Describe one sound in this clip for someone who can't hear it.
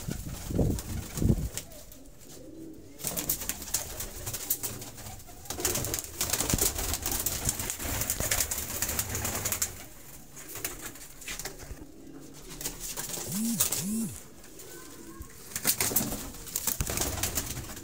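Pigeons coo softly and steadily nearby.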